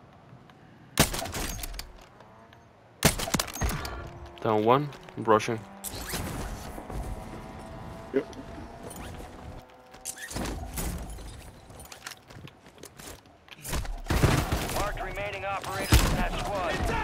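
Loud gunshots crack in short, sharp bursts.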